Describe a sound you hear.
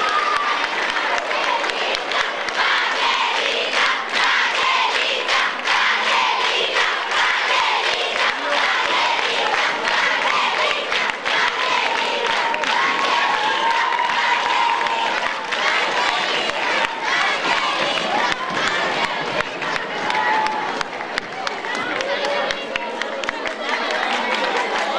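A crowd applauds steadily in a large hall.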